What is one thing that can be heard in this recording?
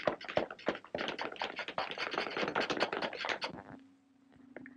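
Many small hammers tap and clatter busily at once.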